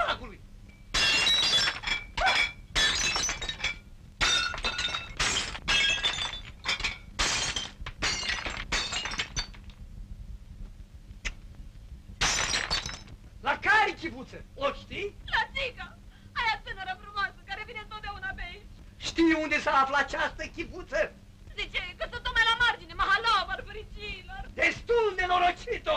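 A middle-aged man speaks with animation, exclaiming loudly.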